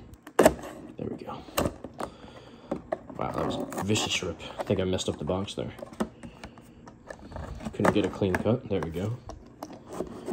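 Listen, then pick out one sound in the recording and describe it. A blade slices through packing tape on a cardboard box.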